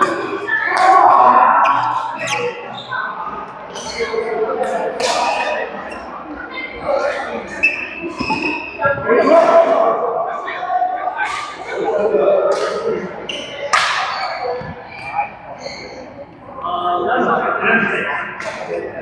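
Badminton rackets strike a shuttlecock in an echoing hall.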